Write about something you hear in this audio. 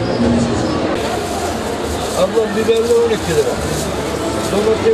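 A plastic bag rustles and crinkles in a man's hands.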